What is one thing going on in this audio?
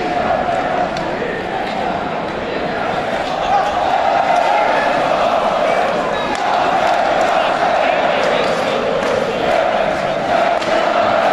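A large crowd chants loudly in a big echoing arena.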